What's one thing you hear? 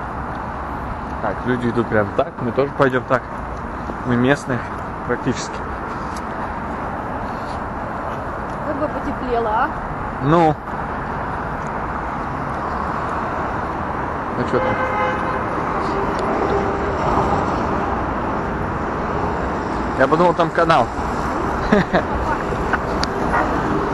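City traffic hums steadily in the distance outdoors.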